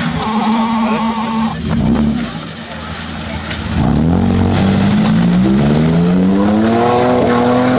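An engine revs hard, rising in pitch.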